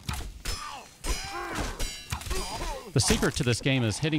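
A heavy club strikes flesh with dull thuds.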